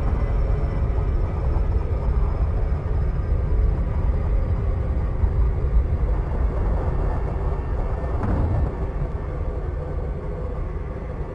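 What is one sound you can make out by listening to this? A spaceship engine rumbles with a deep, steady hum.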